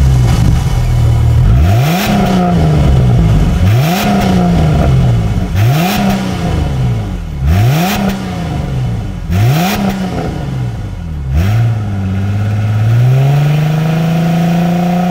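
A car engine revs repeatedly in loud bursts, then settles into a steady idle.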